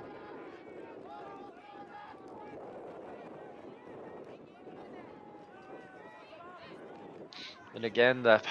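Young players shout and call to each other across an open outdoor field.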